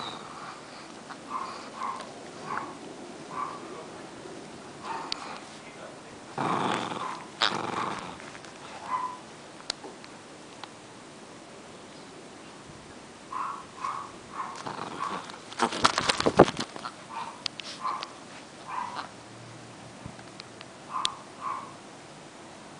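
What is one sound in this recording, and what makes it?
A squeaky toy squeaks again and again.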